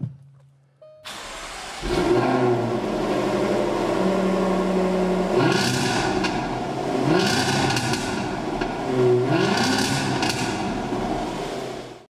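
A car engine starts and rumbles at idle.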